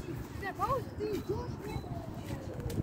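A young boy shouts playfully nearby.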